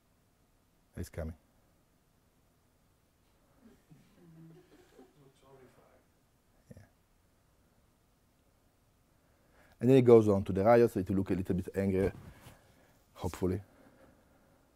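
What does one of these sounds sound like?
A man speaks in short bursts to an audience.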